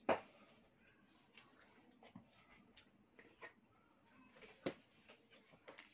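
Plastic packaging and cups clink and rustle on a table.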